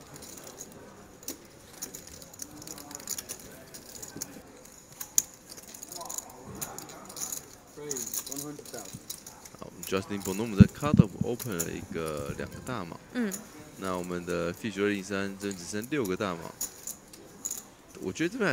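Poker chips click and clack against each other on a table.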